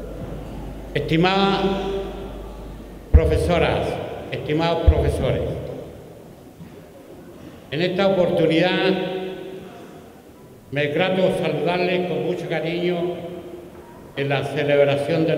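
An older man speaks calmly into a microphone in a large echoing hall.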